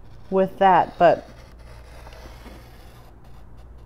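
A paper trimmer blade slides along with a soft scrape.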